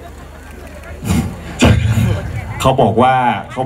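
A crowd of people chatter and call out nearby, outdoors.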